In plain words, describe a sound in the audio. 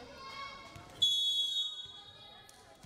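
A whistle blows sharply in a large echoing hall.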